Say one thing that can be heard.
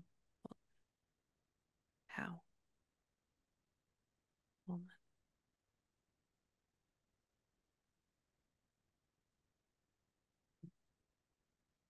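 A microphone rustles and taps as a hand handles it.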